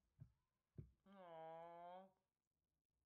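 A young man hums a short loud note.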